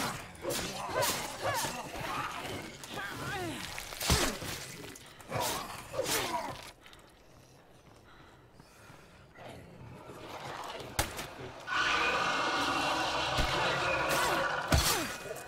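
Blows land with heavy thuds during a brawl.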